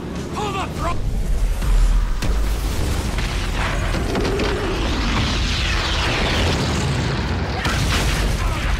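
An explosion booms with a deep rumble and falling debris.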